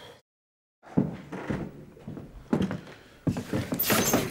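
Footsteps thud across a floor.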